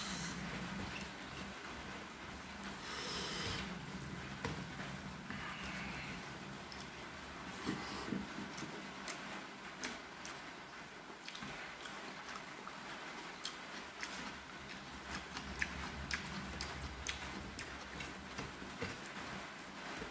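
Fingers squelch through wet rice and curry on a metal plate.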